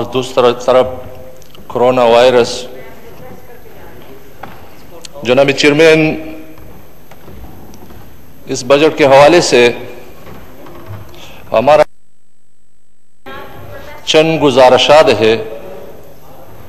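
A middle-aged man speaks forcefully in short bursts through a microphone in a large echoing hall.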